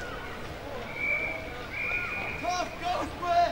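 A referee's whistle blows two short blasts.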